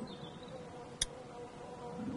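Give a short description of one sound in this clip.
A short menu click sounds.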